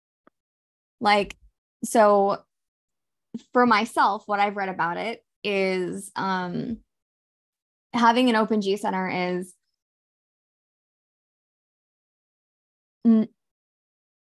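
A young woman speaks calmly through an online call, in short bursts with pauses.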